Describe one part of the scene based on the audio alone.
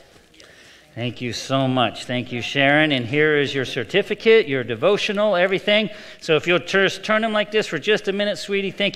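A man speaks calmly and steadily through a microphone in a reverberant hall.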